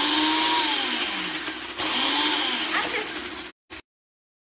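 A blender whirs loudly and then stops.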